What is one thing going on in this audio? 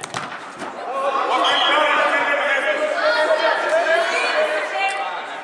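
A man calls out loudly to the players nearby.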